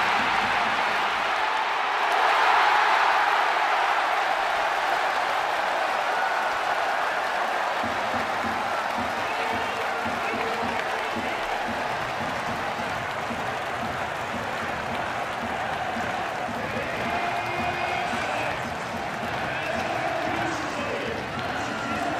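Young men shout and whoop with excitement close by.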